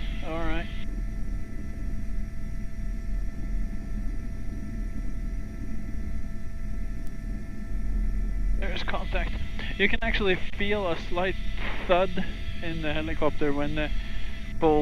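A helicopter engine and rotor drone steadily and loudly from inside the cabin.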